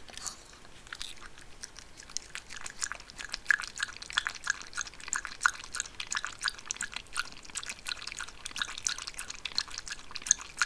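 A dog laps water quickly and rhythmically.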